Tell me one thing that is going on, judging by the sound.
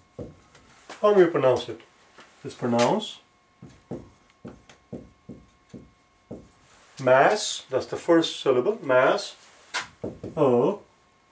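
A man speaks slowly and clearly, close by.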